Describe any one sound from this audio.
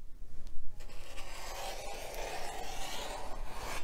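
A rotary cutter rolls through fabric with a soft rasp.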